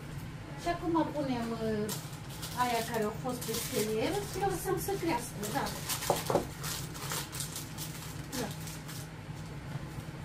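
A middle-aged woman talks close by.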